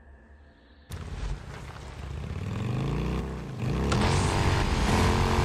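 A motorcycle engine revs and roars as it speeds up.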